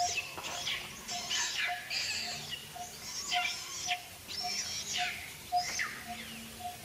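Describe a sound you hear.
A young monkey screeches shrilly and repeatedly.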